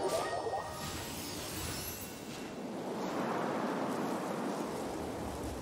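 Wind rushes past in a swooping glide.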